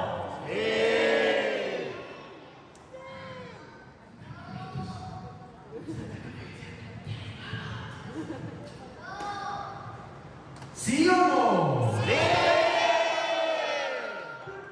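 Young women sing and speak in a lively, theatrical way on a stage, heard from the audience.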